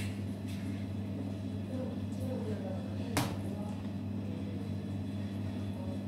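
Hands slap and pat soft dough.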